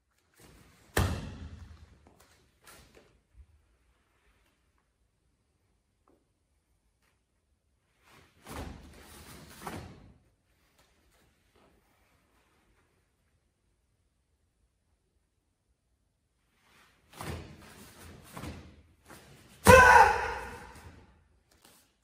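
A man shouts sharply in an echoing room.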